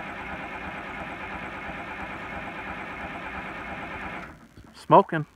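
An old tractor engine idles with a steady rumble, then shuts off.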